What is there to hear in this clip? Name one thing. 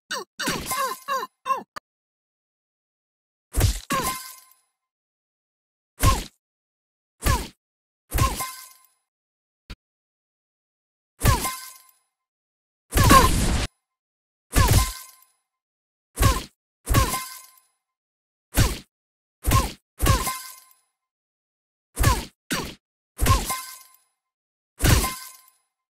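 Cartoon punches land again and again with sharp, echoing smacks.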